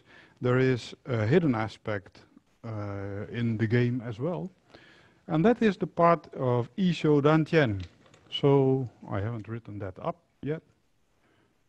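A middle-aged man speaks calmly and clearly into a nearby microphone.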